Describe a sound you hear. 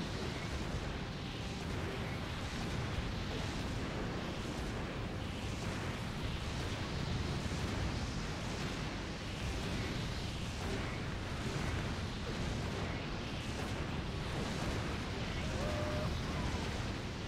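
Explosions boom and roar continuously.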